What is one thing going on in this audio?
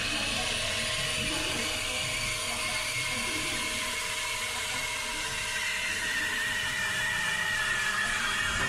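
A steam wand hisses steadily into a glass of liquid.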